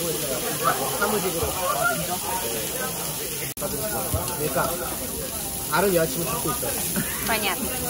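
Meat sizzles steadily on a hot grill.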